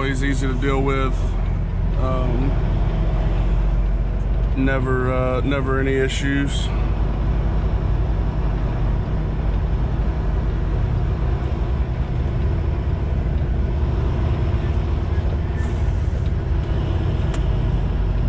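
A truck's diesel engine rumbles steadily.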